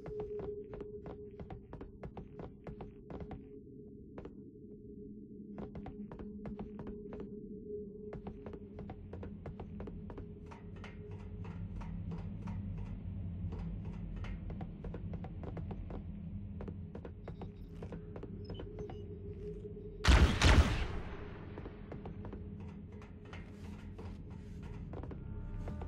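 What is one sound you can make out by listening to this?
Heavy footsteps clank steadily on a metal floor.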